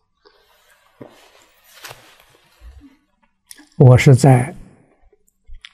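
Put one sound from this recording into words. An elderly man speaks calmly and slowly into a microphone.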